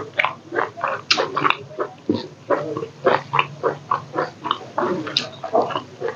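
Fingers squish and pick through soft food.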